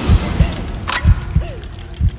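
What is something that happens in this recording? A gunshot rings out.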